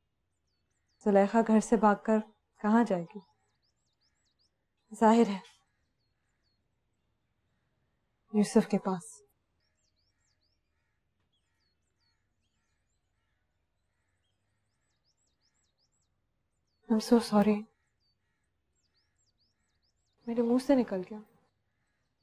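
A second young woman speaks with concern, close by.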